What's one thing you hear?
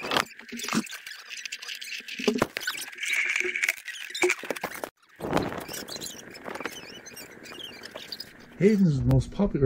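Wooden toy train pieces clack and rattle against a wooden track.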